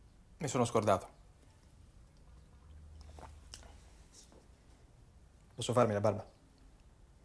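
A young man speaks briefly and calmly, close by.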